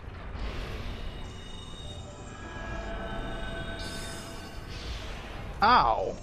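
A magic spell hums and chimes as it is cast.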